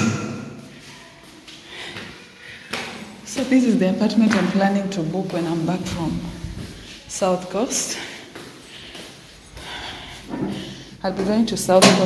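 A man's footsteps tap on a tiled floor.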